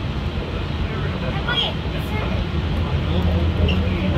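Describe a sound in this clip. A monorail train hums as it glides past.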